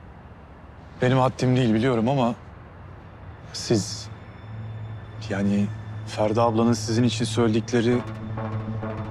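A young man speaks earnestly, close by.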